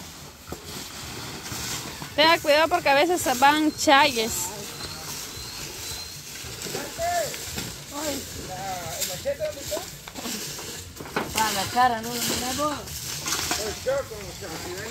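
A bamboo pole scrapes and knocks through a pile of debris.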